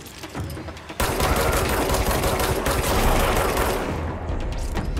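A pistol fires a rapid burst of shots.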